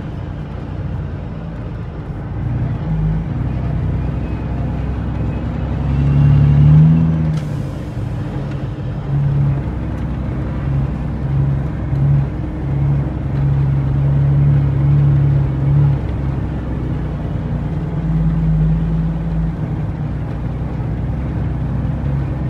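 Tyres crunch and rattle over a rough dirt road.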